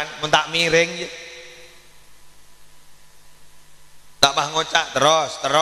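A man speaks with animation into a microphone, heard through a loudspeaker with a slight echo.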